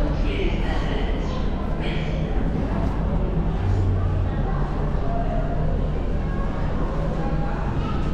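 Footsteps echo along a tiled corridor.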